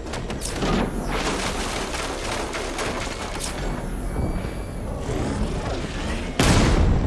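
A powerful car engine roars as a vehicle races along a street.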